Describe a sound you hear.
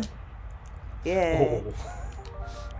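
A woman speaks briefly with animation, close by.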